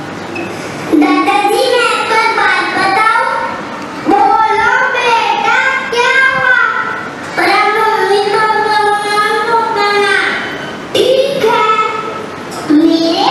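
A young boy speaks loudly and clearly.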